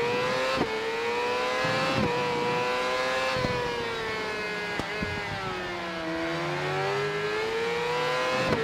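A motorcycle engine whines at high revs, its pitch dipping and rising through gear changes.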